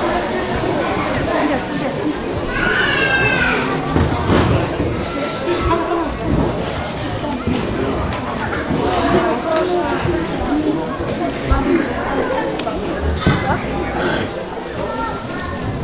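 Music with singing plays in a hall.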